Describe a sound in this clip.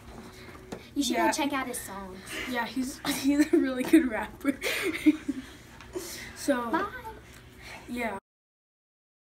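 A young boy talks and laughs close to a microphone.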